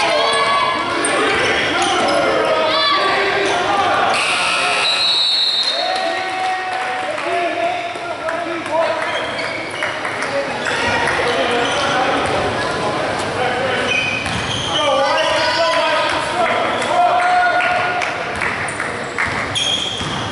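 Young women chant and cheer loudly in an echoing gym.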